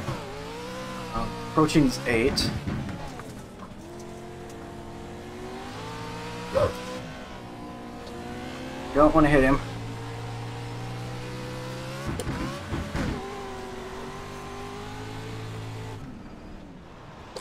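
A racing car engine roars steadily, its pitch rising and falling as it shifts and revs.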